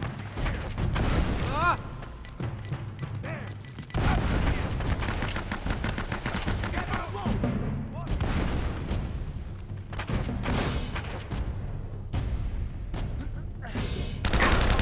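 Gunshots crack rapidly, echoing through a large stone hall.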